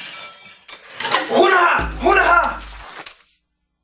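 A young man shouts with excitement nearby.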